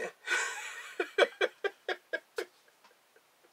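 A man laughs heartily close by in short bursts.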